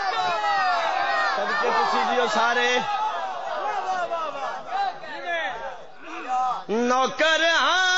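A man chants loudly through a loudspeaker with an echo.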